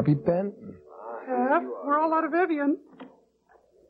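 A woman sings in a high, wavering voice.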